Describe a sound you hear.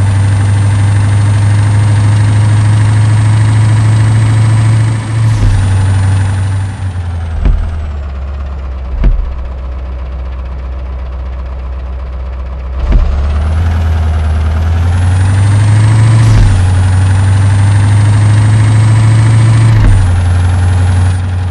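A bus engine hums and drones steadily, rising and falling with speed.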